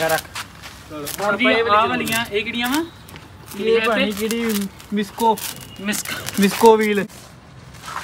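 Young men talk casually close by.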